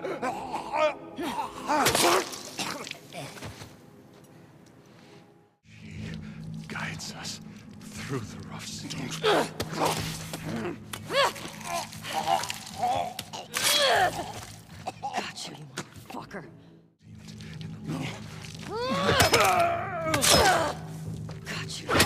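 Heavy blows land in a violent struggle.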